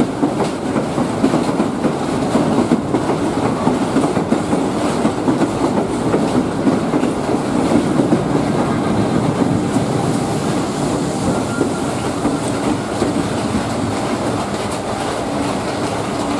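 Train wheels clatter and rumble over the rails close by.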